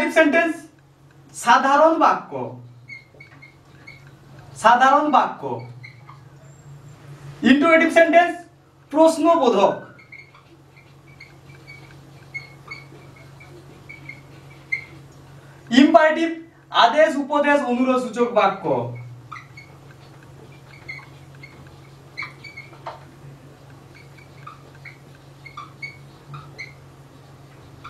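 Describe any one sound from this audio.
A marker squeaks as it writes on a whiteboard.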